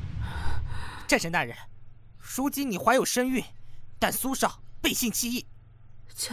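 A man speaks firmly and gravely, close by.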